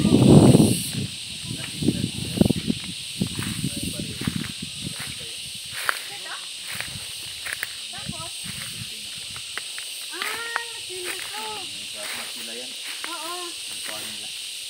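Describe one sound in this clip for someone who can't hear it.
Footsteps crunch over dry leaves and twigs outdoors.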